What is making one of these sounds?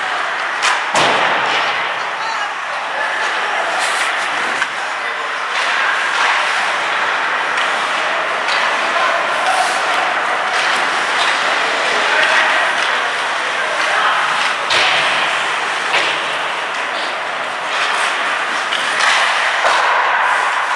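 Hockey sticks clack against pucks and each other.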